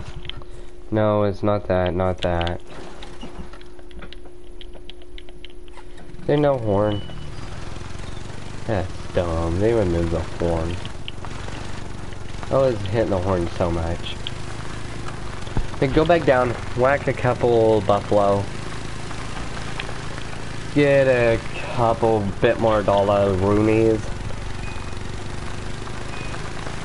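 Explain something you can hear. A quad bike engine drones steadily.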